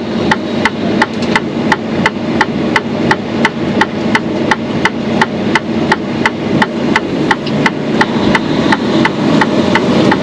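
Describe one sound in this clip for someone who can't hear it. A heavy diesel truck engine rumbles, heard from inside the cab as the truck rolls slowly.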